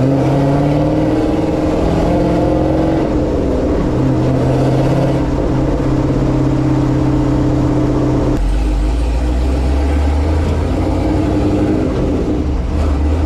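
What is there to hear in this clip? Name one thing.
A truck's engine hums steadily as it drives along a road.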